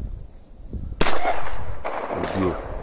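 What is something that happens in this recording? A shotgun fires a single loud blast that echoes outdoors.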